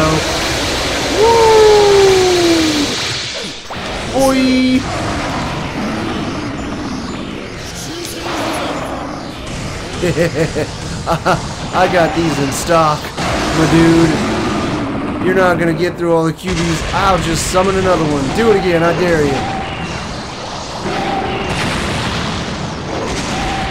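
Game blasts and explosions boom and crackle.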